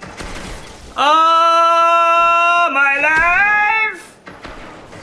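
A man sings loudly in a drawn-out, mocking tone.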